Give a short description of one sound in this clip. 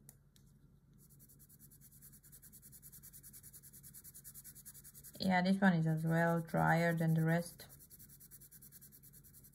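A pencil scratches rapidly back and forth on paper.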